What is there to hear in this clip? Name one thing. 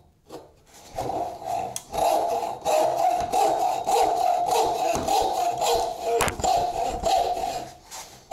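A frame saw rasps through wood in quick, steady strokes.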